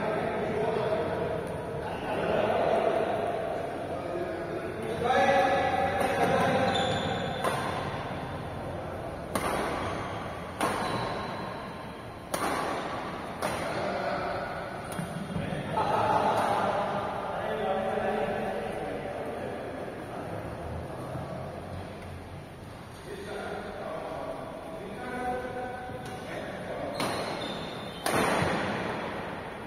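Shuttlecocks smack off racket strings in a large echoing hall.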